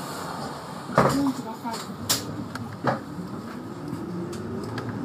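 A bus pulls up close by with a loud rumble.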